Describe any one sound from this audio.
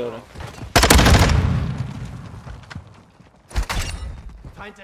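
Gunshots fire in a game with echoing booms.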